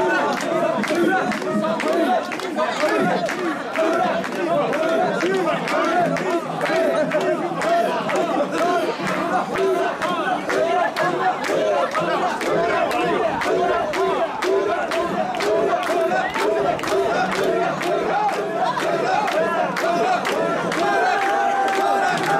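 People clap their hands in a quick steady beat.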